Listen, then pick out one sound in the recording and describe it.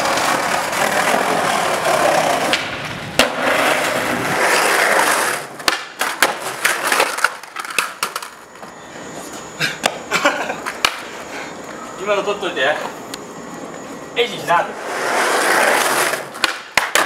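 Skateboard wheels roll on pavement.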